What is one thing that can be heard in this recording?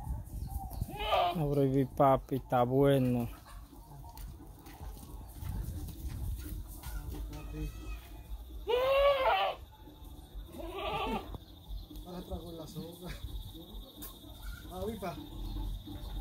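A goat bleats loudly several times, close by.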